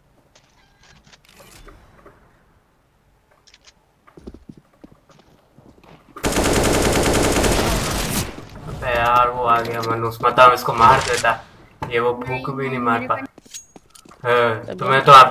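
A rifle fires short bursts of gunshots.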